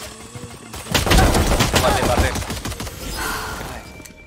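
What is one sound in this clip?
Pistol shots crack in quick succession.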